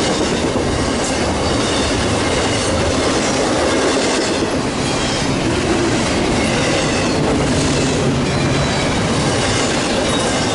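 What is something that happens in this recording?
Train wheels clatter and screech on the rails.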